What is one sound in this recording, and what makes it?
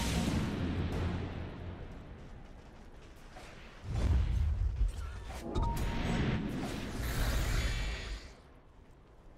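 Magic spells crackle and burst during a fantasy battle.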